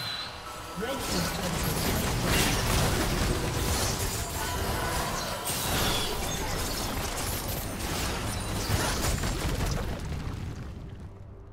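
Game spell effects crackle and boom in a fight.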